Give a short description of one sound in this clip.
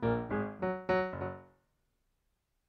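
A piano plays a short run of notes, then falls silent.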